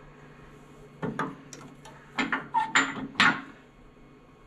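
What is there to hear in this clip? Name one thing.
Metal parts clank and knock as a tool rest is tightened.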